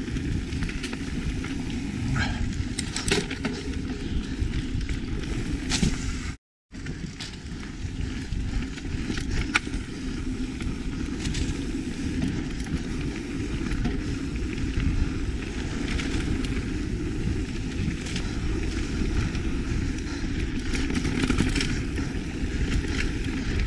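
Wind rumbles steadily across a moving microphone.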